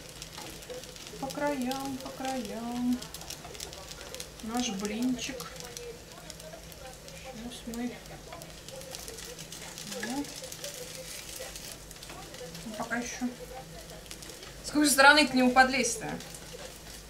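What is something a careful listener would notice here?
Batter sizzles in a frying pan.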